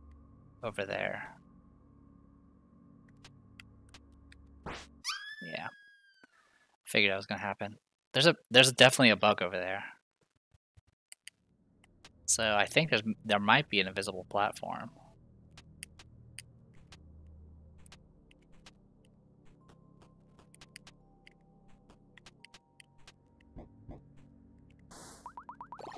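Soft video game music plays in the background.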